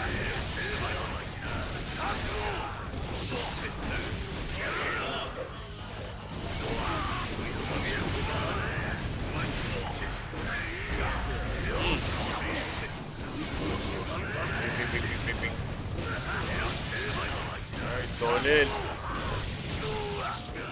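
Blades slash and strike with sharp, rapid hits.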